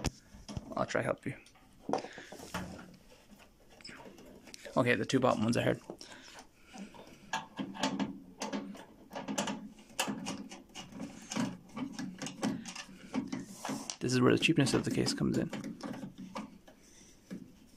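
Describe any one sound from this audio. A metal panel knocks and rattles as it is handled.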